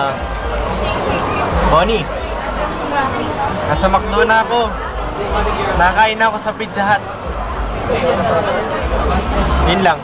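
A crowd murmurs in the background of a busy room.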